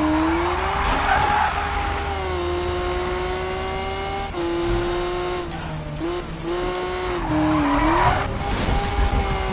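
Tyres screech while the car drifts.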